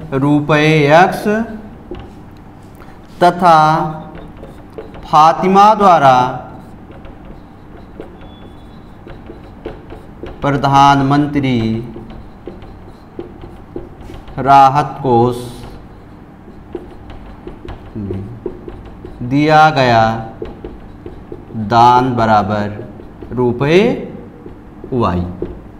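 A marker squeaks on a whiteboard as a man writes.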